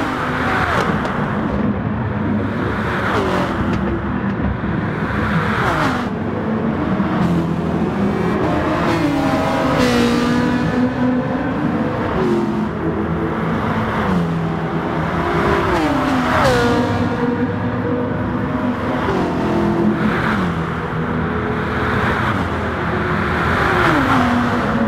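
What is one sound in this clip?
Racing car engines roar loudly, revving up and dropping with each gear shift.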